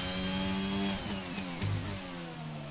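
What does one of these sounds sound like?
Gears shift with short clunks as the race car brakes.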